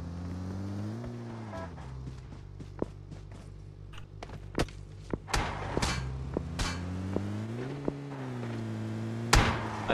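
A car engine hums and revs as the car drives off.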